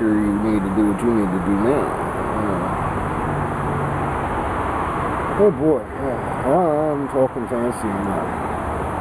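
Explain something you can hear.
A man speaks casually close by.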